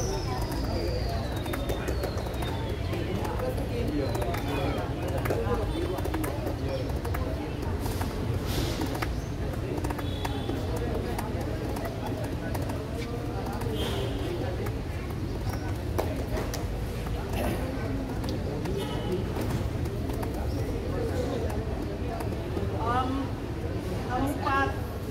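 Spectators and players chatter and call out outdoors.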